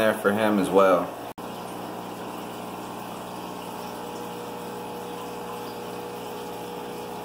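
Air bubbles gurgle steadily through water.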